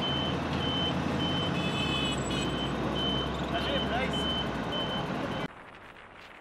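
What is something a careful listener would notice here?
A heavy vehicle's engine rumbles loudly close by.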